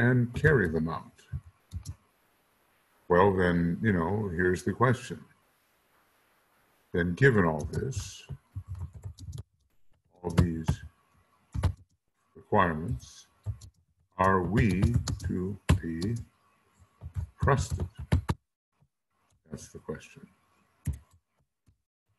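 An elderly man speaks calmly through a microphone, in bursts.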